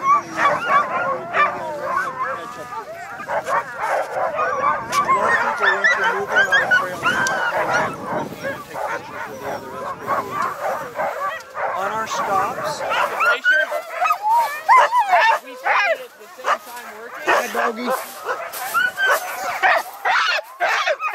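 Many dogs howl and yelp excitedly all around, outdoors.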